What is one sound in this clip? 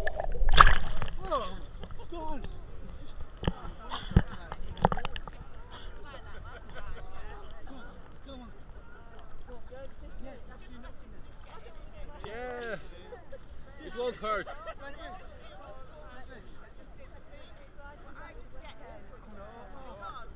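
Small waves lap gently.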